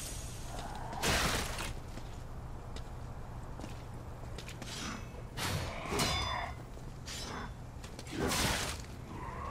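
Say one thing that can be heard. Swords swing and clash in sharp bursts.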